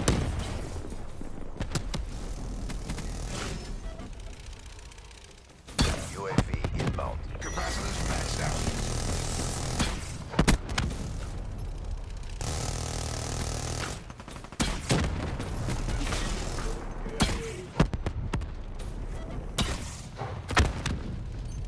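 A minigun fires in loud rattling bursts.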